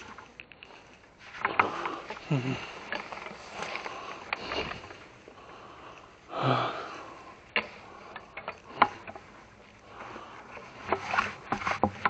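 A bag rustles and crinkles.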